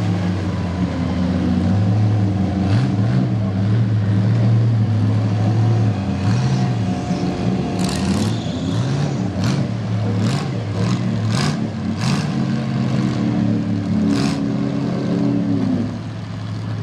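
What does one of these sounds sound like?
A truck engine roars and revs as it churns through deep mud.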